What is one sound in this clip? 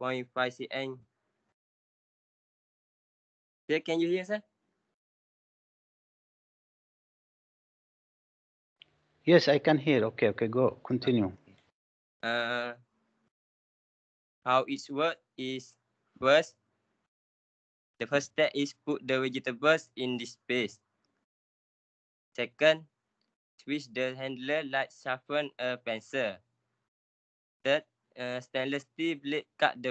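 A young man speaks through an online call in bursts with pauses.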